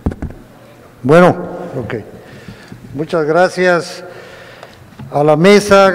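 A man speaks through a microphone.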